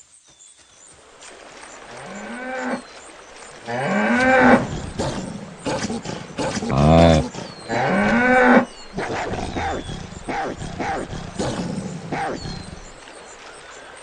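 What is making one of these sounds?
Water splashes as an animal wades through it.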